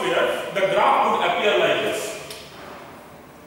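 A man speaks clearly, close by.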